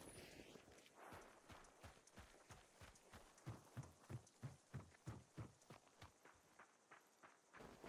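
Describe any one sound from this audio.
Footsteps crunch quickly over rocky ground.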